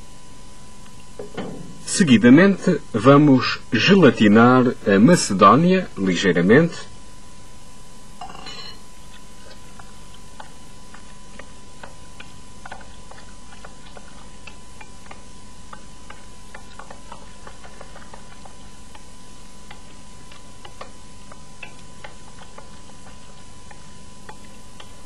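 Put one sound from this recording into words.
A spoon scrapes and clinks faintly against a glass bowl.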